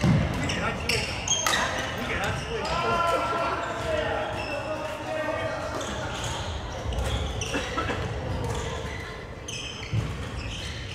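Shuttlecocks are struck with sharp pops of rackets, echoing in a large hall.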